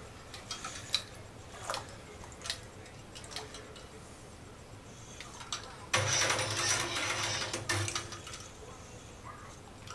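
A wire whisk stirs curds in whey, ticking against a metal pot.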